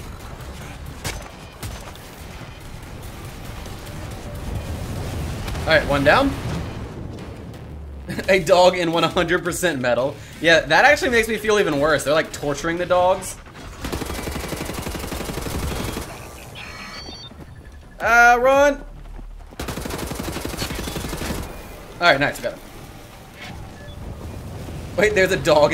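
Gunfire from a game rattles in rapid bursts.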